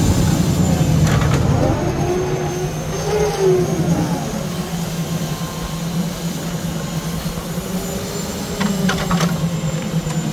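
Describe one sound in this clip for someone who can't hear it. Logs knock against each other.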